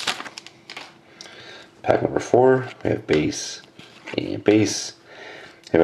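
Trading cards slide against each other as they are flipped through.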